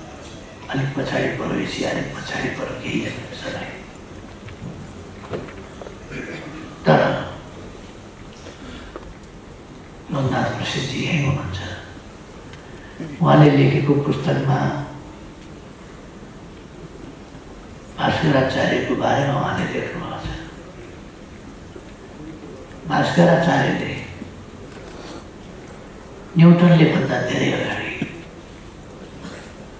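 An elderly man speaks slowly and deliberately through a microphone, with long pauses, in a large echoing hall.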